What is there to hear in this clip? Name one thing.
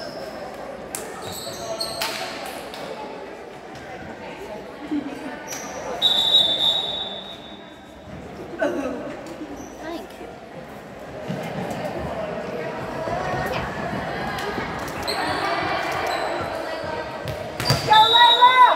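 A volleyball is struck with a smack.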